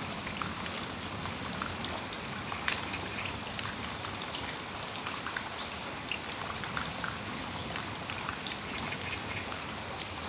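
Raindrops drip and patter onto a metal awning.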